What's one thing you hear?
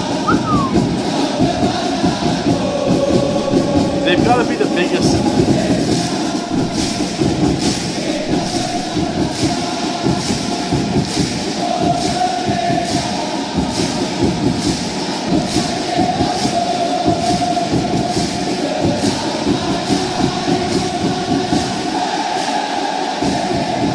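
A large stadium crowd chants loudly in unison.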